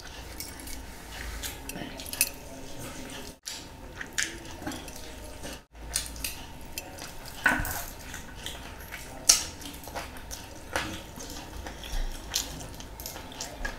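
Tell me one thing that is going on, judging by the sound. A man chews food loudly close to a microphone, with wet smacking sounds.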